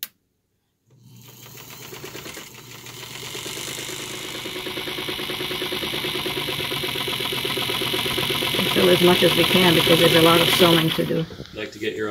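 A sewing machine whirs steadily, speeding up as it runs.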